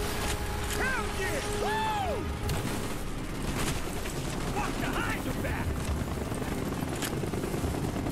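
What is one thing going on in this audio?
A machine gun fires in bursts.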